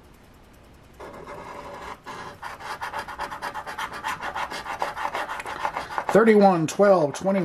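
A coin scratches the coating off a lottery scratch ticket.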